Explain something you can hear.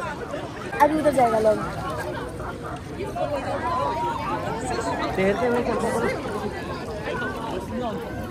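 Water splashes gently in a pool.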